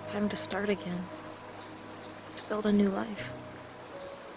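A young woman speaks quietly and thoughtfully, close by.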